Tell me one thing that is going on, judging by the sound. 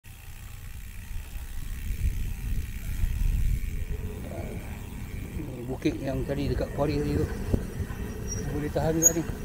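Wind rumbles past a bicycle coasting downhill.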